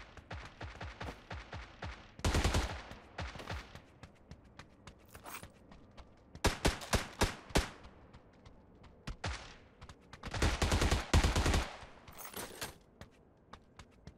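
Footsteps run quickly across a hard surface.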